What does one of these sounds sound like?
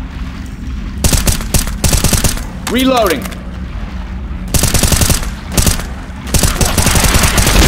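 An automatic rifle fires in rapid bursts, echoing in a narrow space.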